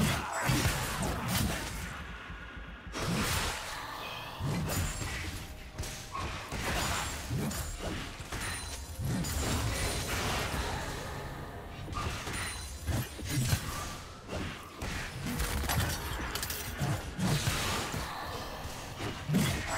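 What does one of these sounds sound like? Spell blasts and weapon hits burst and crackle over and over in a fast fight.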